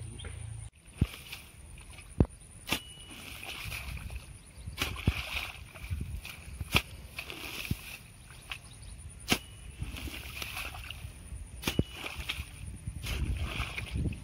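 A hoe thuds and scrapes into wet soil.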